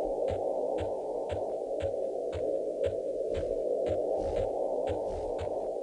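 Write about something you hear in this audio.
Footsteps pad steadily across soft ground at a brisk pace.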